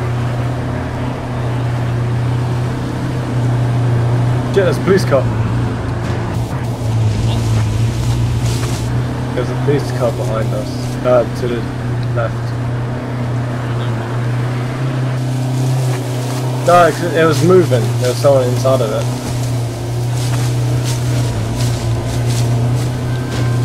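A vehicle engine hums steadily while driving over rough ground.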